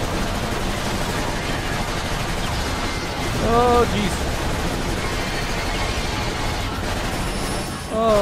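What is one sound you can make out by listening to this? A vehicle engine roars steadily.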